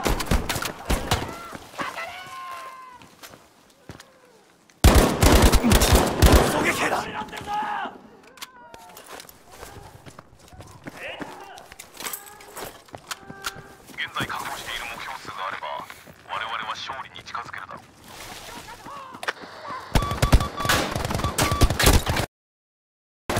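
A submachine gun fires in rapid, loud bursts.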